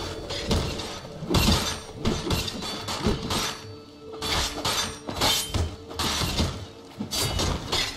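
Blows land with sharp thuds and clashes in a scuffle.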